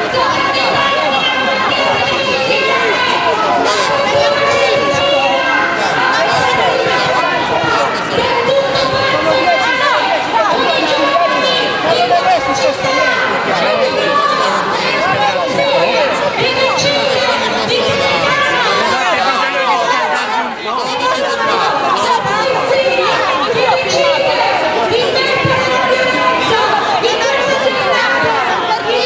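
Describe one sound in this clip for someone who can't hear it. A crowd of men and women talks and shouts over one another nearby.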